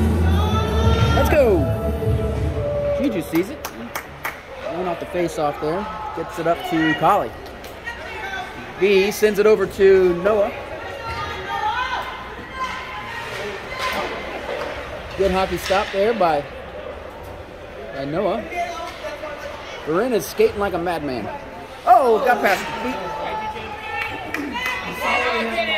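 Women and children chatter close by in an echoing rink.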